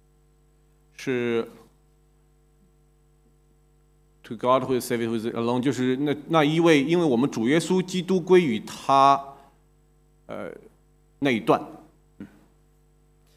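A man speaks calmly into a microphone, in pauses.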